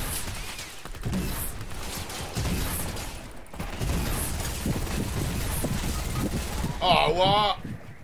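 A young man talks with animation into a microphone.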